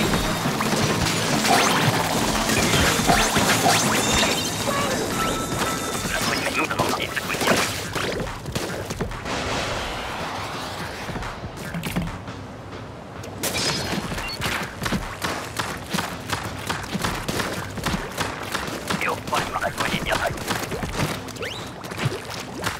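Ink weapons splatter and spray in quick bursts.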